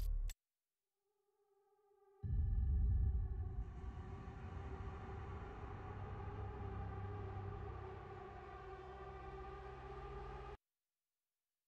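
A deep electronic drone hums with a steady, swelling tone.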